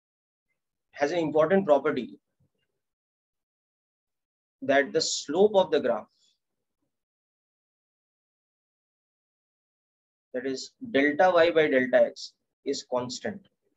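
A man explains calmly, heard close through a microphone, in short bursts with pauses.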